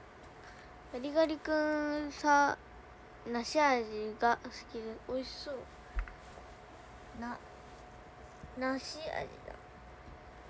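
A teenage girl speaks close to a phone microphone.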